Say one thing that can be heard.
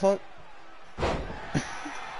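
A wrestler's body slams hard onto the ring mat.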